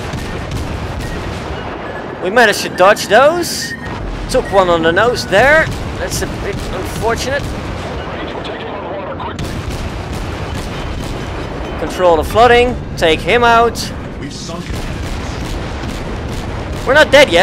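Heavy naval guns fire with deep booms.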